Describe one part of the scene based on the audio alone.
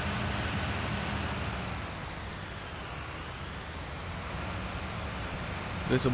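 A tractor engine rumbles steadily, dipping slightly as the tractor slows.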